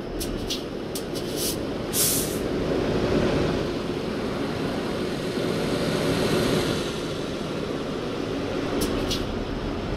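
Passing trucks roar by on a road.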